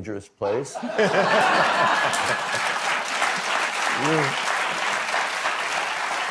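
An audience laughs and applauds loudly.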